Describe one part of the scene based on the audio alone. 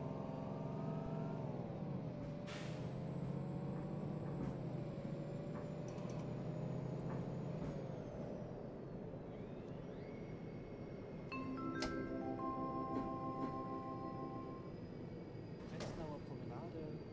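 A bus engine hums steadily, its pitch rising and falling as the bus drives on.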